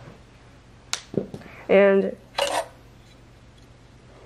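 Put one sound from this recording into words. A circuit board knocks and scrapes as it is pulled out of a metal slot.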